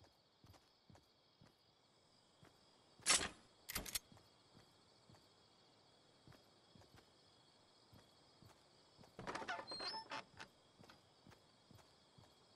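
Footsteps patter softly as a game character runs.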